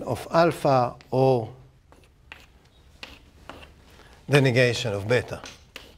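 Chalk taps and scrapes on a blackboard.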